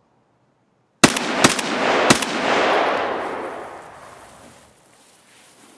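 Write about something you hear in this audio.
A rifle fires a few loud shots that echo and slowly fade.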